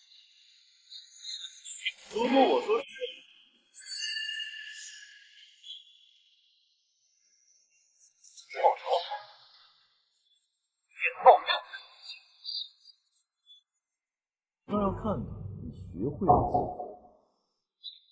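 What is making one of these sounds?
A man speaks with strained emotion, close by.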